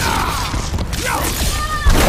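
An energy blast whooshes and crackles.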